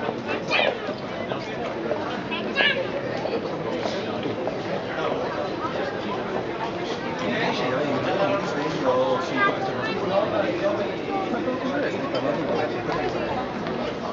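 Footsteps pass close by on pavement.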